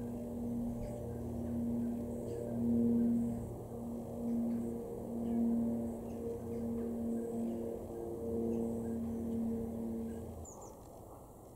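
A dove coos in a low, rhythmic, repeated call nearby.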